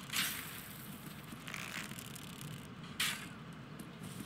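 A bowstring twangs as arrows are shot.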